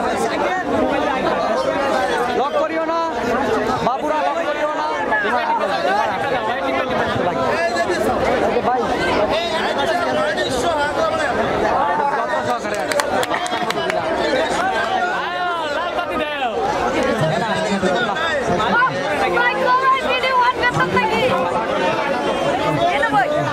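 Men sing into microphones through loud stage speakers.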